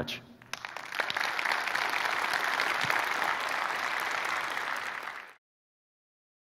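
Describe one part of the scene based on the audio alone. A large audience applauds loudly in a hall.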